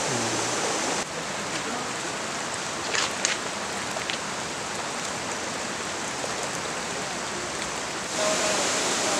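A muddy stream runs and trickles nearby.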